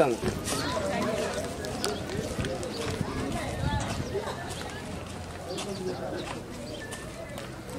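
Footsteps crunch on a dirt road outdoors.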